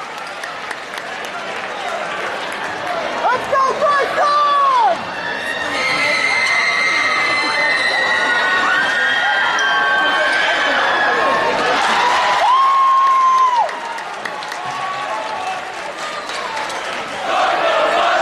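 A large crowd chatters and shouts in a big echoing hall.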